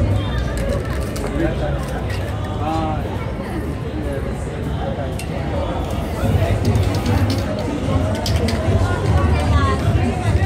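A crowd of men, women and children chatters nearby outdoors.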